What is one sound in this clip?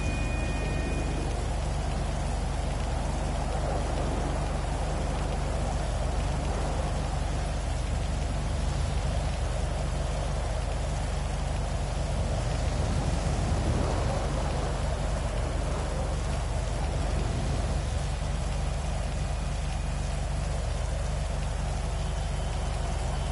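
Rain falls steadily on a wet street.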